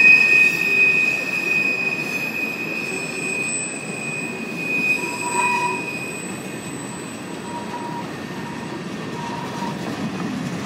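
Train wheels squeal shrilly against the rails.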